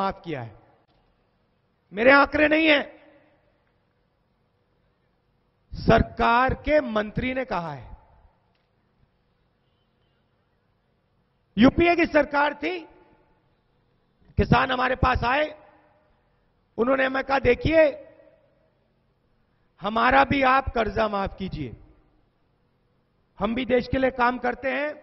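A man speaks forcefully into a microphone through loudspeakers, in short bursts with pauses.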